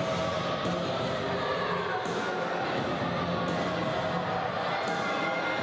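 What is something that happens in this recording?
A man speaks through a loudspeaker, echoing in a large hall.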